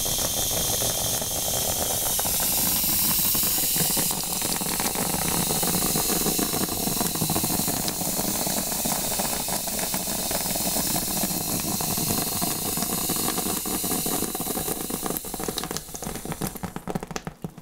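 Water sprays from a shower head onto wet hair.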